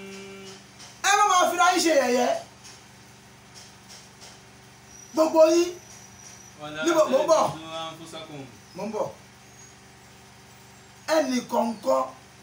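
A young man speaks calmly through a microphone in short phrases, with pauses between them.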